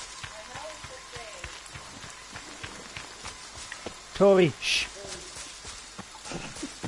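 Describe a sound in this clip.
Footsteps crunch through undergrowth at a steady pace.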